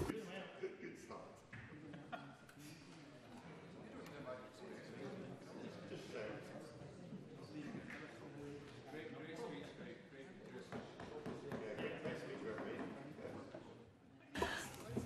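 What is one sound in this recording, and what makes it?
A man speaks at length through a microphone, heard faintly in a large hall.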